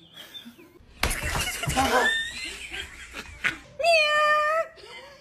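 A man shouts loudly with excitement.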